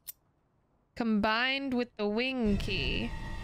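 A young woman speaks in a sing-song voice close to a microphone.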